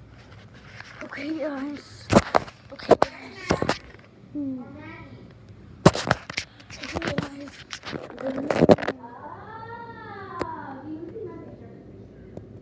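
A young boy talks close to a phone microphone.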